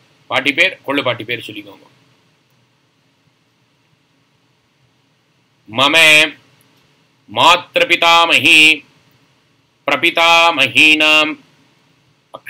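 A man speaks calmly and closely into a microphone, pausing between phrases.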